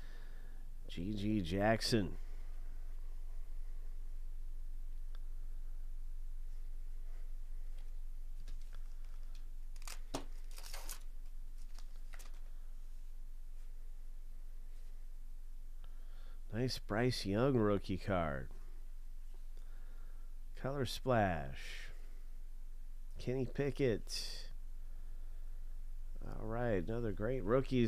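Trading cards slide softly against each other.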